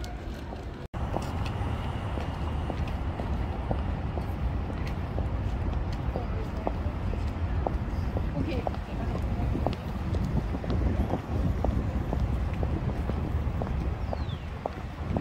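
High heels click steadily on pavement.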